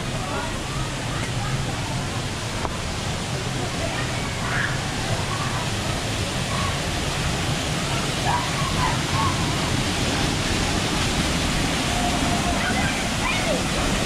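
Men and women talk and call out in the distance.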